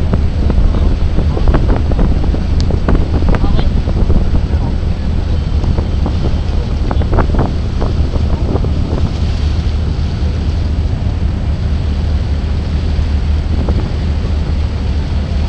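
Wind blusters loudly across the microphone.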